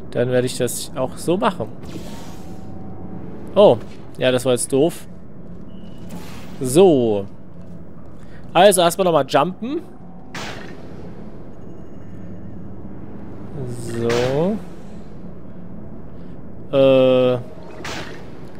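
A sci-fi gun fires with short electronic zaps.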